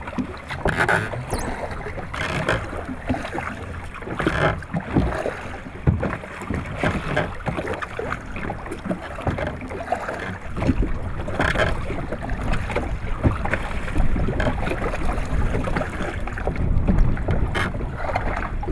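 Water splashes against the side of a small boat.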